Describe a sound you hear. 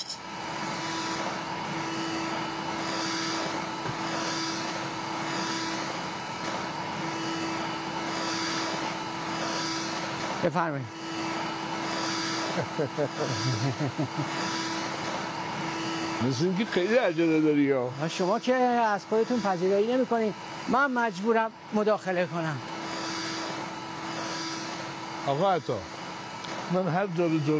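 A vacuum cleaner hums steadily.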